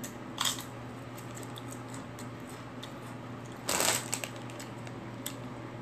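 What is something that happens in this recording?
A man crunches on a crisp chip.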